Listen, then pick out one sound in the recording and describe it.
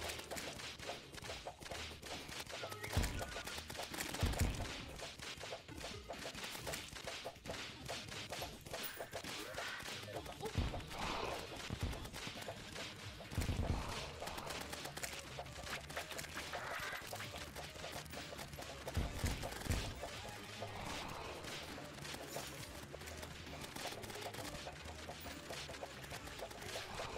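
Rapid game weapon shots and zaps crackle throughout.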